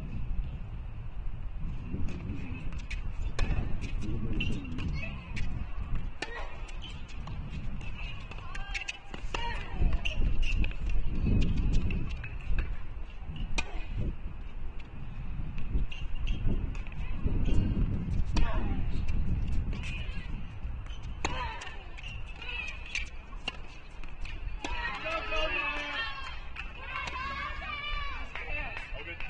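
A tennis ball is struck sharply back and forth.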